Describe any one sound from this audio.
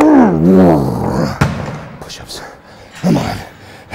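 Heavy dumbbells thud onto a floor.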